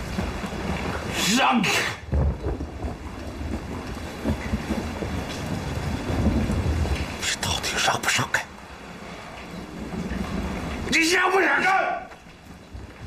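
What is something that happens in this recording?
A middle-aged man speaks tensely at close range.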